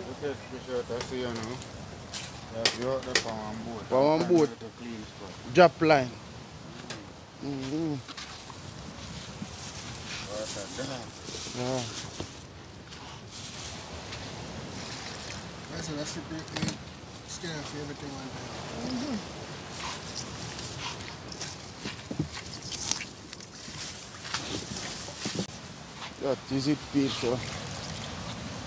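A woman talks calmly nearby, outdoors.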